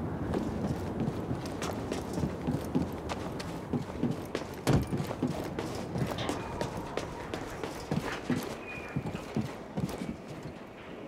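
Footsteps run quickly over hard ground and metal stairs.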